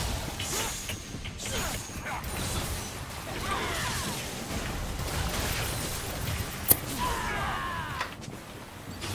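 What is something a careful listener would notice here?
Game characters' attacks hit with sharp impacts.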